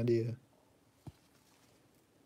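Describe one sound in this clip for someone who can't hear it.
A small plastic box is set down on a hard surface with a light tap.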